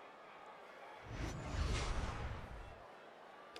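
A large stadium crowd bursts into a loud roar that then fades.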